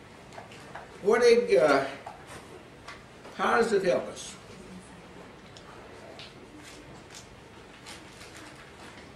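An elderly man preaches loudly and with emphasis into a microphone in an echoing room.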